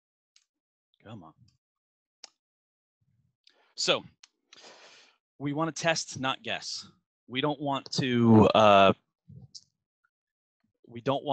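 A middle-aged man speaks with animation into a headset microphone, close up.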